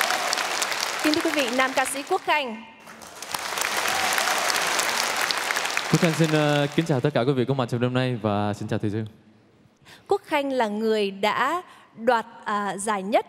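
A woman speaks cheerfully through a microphone.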